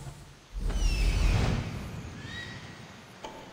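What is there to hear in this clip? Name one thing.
Wind rushes loudly in a swooping dive.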